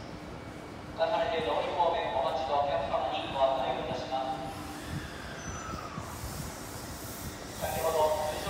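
Train brakes squeal as the train slows to a stop.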